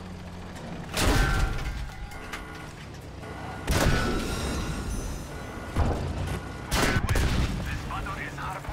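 Loud explosions boom and crash nearby.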